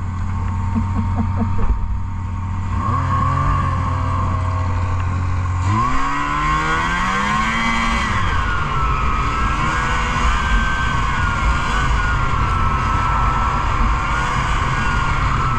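A snowmobile engine roars close by, revving up and down.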